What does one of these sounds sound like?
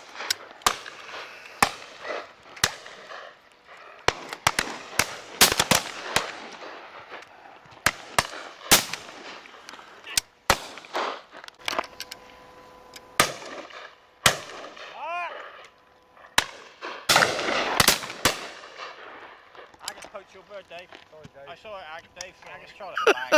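Shotguns fire sharp, loud bangs again and again, echoing outdoors.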